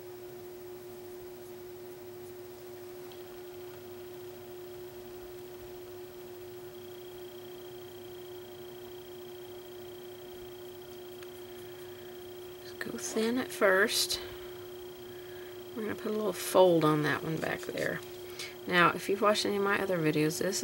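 A paintbrush strokes softly across paper.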